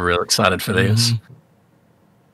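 A man speaks briefly with animation into a microphone over an online call.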